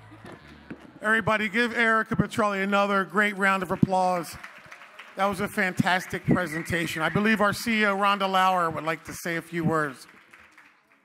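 A man speaks loudly into a microphone over a loudspeaker in a large hall.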